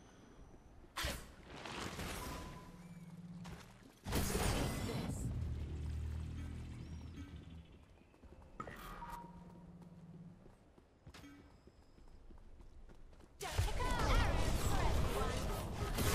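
Magic blasts and whooshes burst out in quick, loud bursts.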